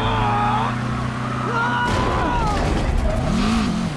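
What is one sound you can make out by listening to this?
A car crashes and rolls over with a loud metallic bang.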